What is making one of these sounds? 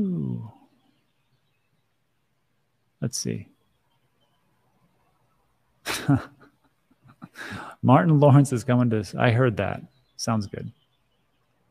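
A middle-aged man speaks calmly and casually into a close microphone, in short bursts with pauses.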